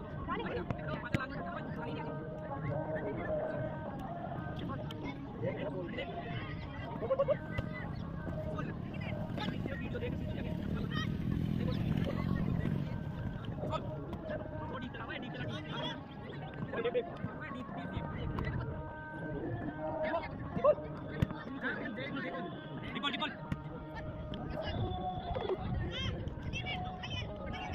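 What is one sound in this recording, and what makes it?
Young people talk and call out outdoors.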